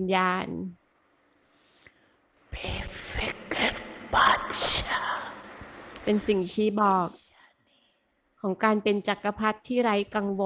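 An elderly woman speaks slowly and calmly into a microphone.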